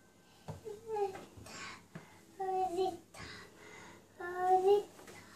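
Clothes rustle as a toddler pulls laundry about.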